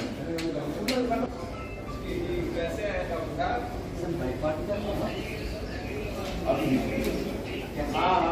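Several men talk at once nearby, in a large echoing hall.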